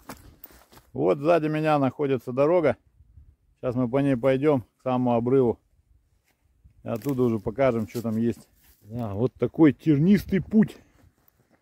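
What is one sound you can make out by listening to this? A man speaks calmly and close by, outdoors.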